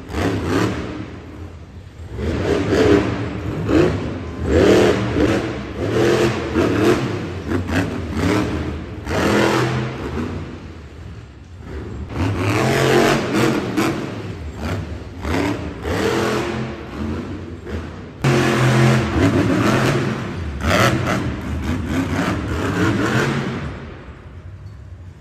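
A monster truck engine roars and revs loudly in a large echoing arena.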